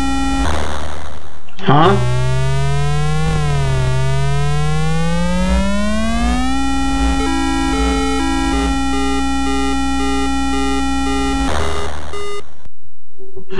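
An electronic crash noise bursts out.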